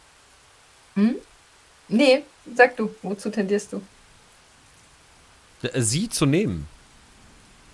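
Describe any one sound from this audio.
A woman talks into a microphone.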